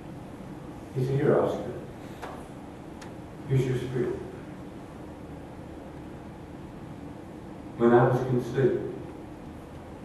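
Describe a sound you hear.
An elderly man speaks in short bursts through a microphone in an echoing room.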